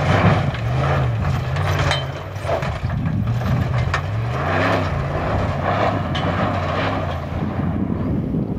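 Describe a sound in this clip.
Tyres crunch and spray over loose gravel.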